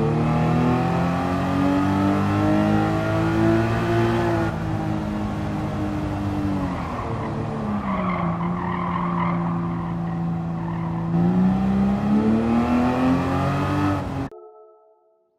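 A racing car engine roars at high revs, its pitch rising and falling as it shifts gears.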